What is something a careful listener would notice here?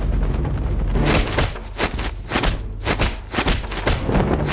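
Blows and thuds land in a fight.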